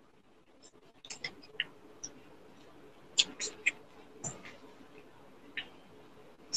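Hands rub and pat on skin.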